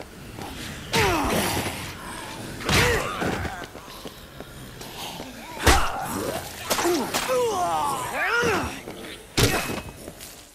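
A wooden plank smacks into bodies with heavy thuds.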